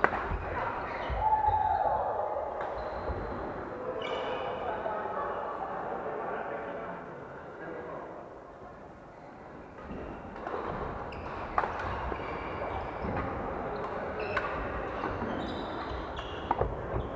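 Shuttlecocks are struck with sharp pops in a large echoing hall.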